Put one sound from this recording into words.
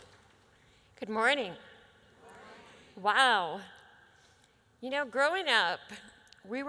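A middle-aged woman speaks with emotion into a microphone, heard through loudspeakers in a large hall.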